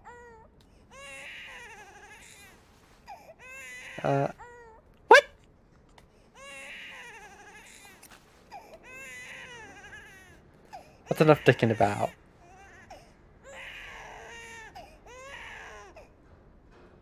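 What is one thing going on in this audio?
A newborn baby cries loudly in wavering wails.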